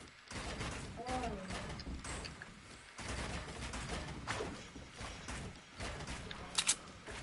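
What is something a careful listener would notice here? Building pieces snap into place with quick, repeated thuds.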